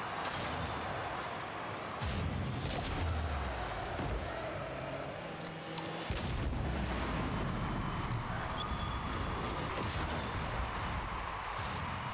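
A game car's engine hums.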